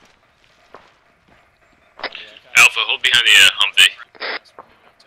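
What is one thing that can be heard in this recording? Boots crunch on dry ground as several people run.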